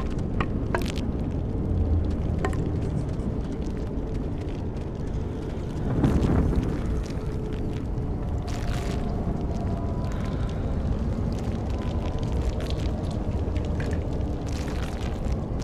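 A fire crackles and pops nearby.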